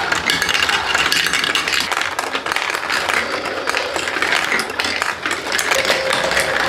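Plastic marbles clatter and rattle along a toy track.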